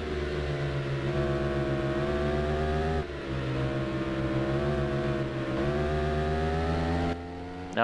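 A motorcycle engine drones loudly at high revs, rising and falling as it shifts gears.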